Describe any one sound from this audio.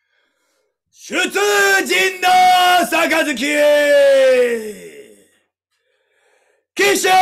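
A young man sings out loudly in long drawn-out notes, close by.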